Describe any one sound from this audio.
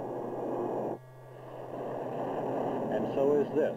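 A jet engine roars nearby.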